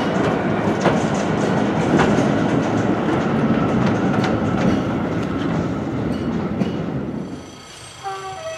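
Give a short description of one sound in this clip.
Train wheels rumble and clatter steadily on the rails.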